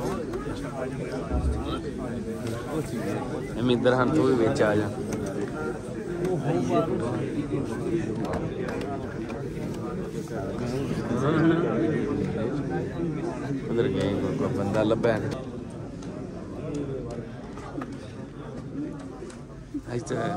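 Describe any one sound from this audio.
A crowd of men chatter and greet one another in a large echoing hall.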